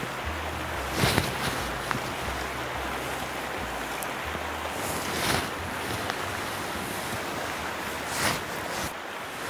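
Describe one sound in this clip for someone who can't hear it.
A fly line swishes through the air as it is cast.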